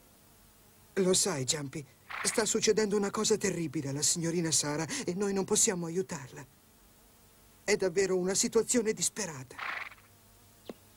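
A young boy speaks softly and anxiously.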